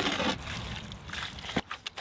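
Wet mud splashes as it is poured from a bucket into a wheelbarrow.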